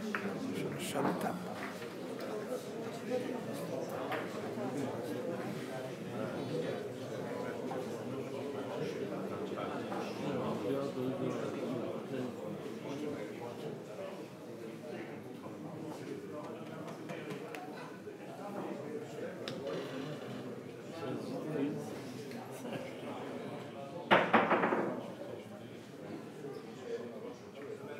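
A crowd of men murmurs and chats nearby in a room.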